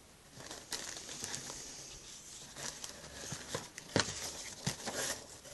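Plastic wrapping crackles.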